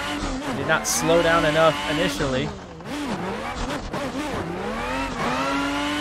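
A racing car engine roars, its pitch rising and falling with gear changes.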